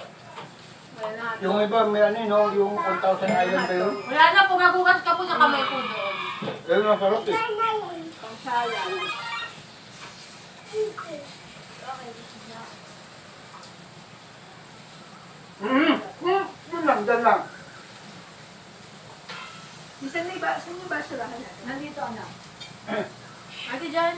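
Several young adults talk and laugh together nearby.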